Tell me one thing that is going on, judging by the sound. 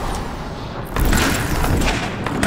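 A rifle fires a sharp shot.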